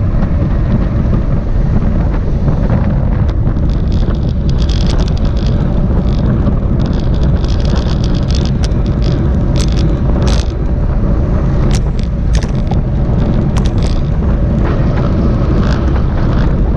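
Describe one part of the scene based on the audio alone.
Bicycle chains and gears tick and whir as riders pedal.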